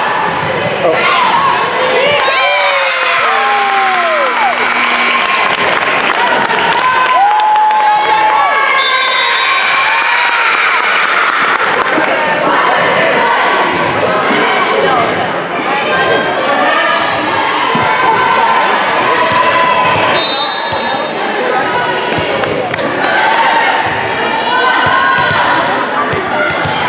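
Young girls cheer and shout in a large echoing gym.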